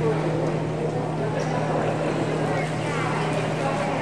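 A swimmer splashes through the water.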